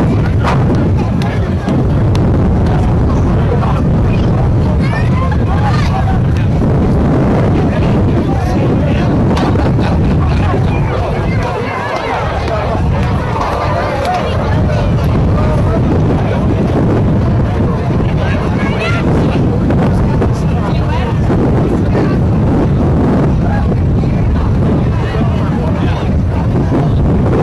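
Several people talk at a distance outdoors.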